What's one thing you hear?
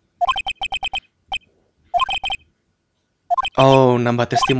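Short electronic beeps chirp in quick bursts.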